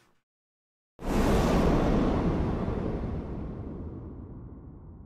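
A loud rushing whoosh sweeps in and slowly fades.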